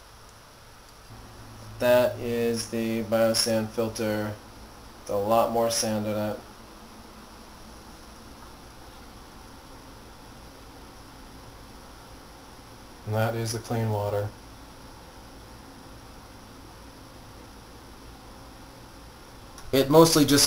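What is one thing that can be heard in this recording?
Water drips slowly into a glass.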